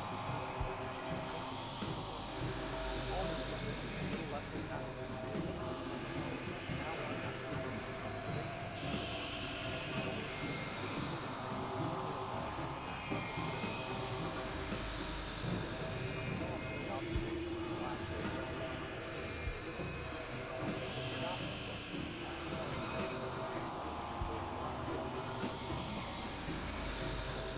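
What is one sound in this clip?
An electronic keyboard plays a steady, layered tune.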